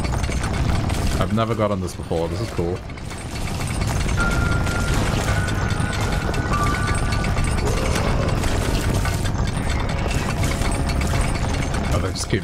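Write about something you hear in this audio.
Video game combat sounds crackle and splatter rapidly.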